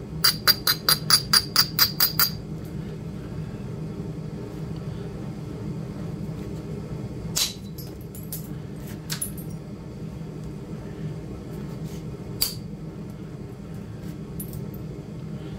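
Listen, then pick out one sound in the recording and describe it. A knife shaves and scrapes at a piece of wood in short, sharp strokes.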